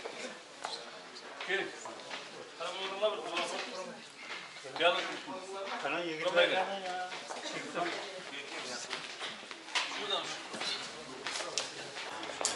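Footsteps shuffle across the floor.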